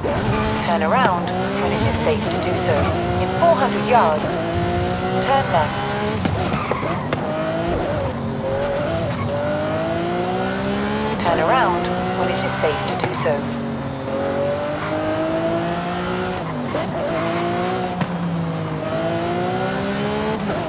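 A sports car engine roars and revs up repeatedly, rising in pitch through quick gear shifts.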